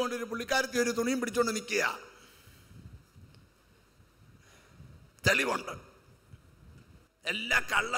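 A man preaches with passion into a microphone, heard through loudspeakers in a large echoing hall.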